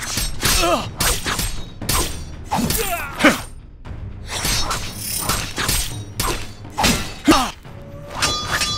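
Swords swish and clash in quick bursts.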